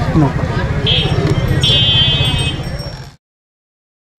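Street market chatter and traffic noise fill the air.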